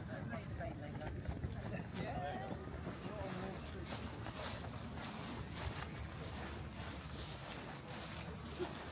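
Footsteps scuff along a paved path.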